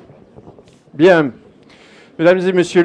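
A man speaks loudly through a microphone and loudspeaker.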